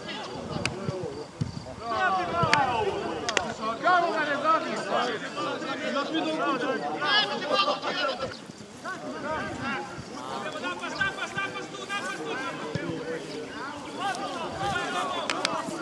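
Young men shout to each other across an open playing field.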